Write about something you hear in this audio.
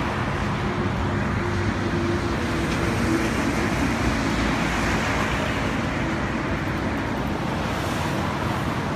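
Traffic rushes past on a nearby road.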